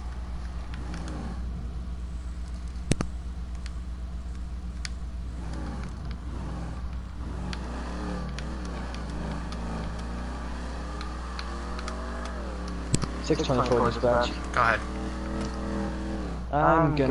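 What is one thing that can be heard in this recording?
A car engine rumbles and revs up and down as the car drives.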